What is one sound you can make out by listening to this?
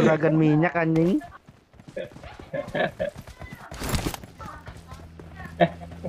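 Footsteps thud quickly on grass and dirt.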